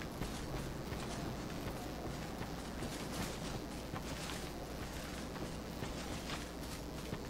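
Footsteps of an armored figure crunch over grass and stone.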